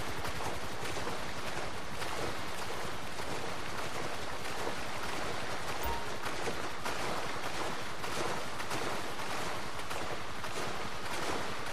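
A small boat engine roars steadily at speed.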